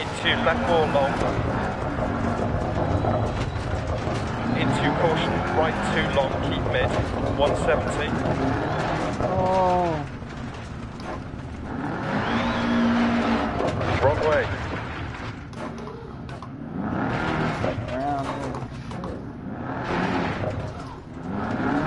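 Tyres crunch and skid over gravel.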